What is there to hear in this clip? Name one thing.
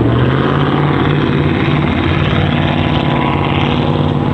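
A pickup truck engine hums as the truck drives slowly.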